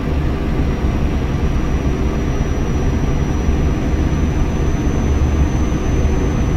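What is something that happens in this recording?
A truck engine drones steadily while driving on a highway.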